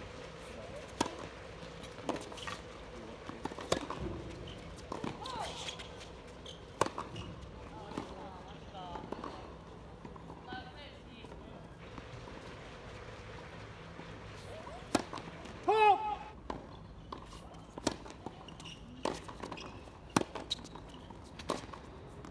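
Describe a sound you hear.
Tennis balls are struck sharply by rackets.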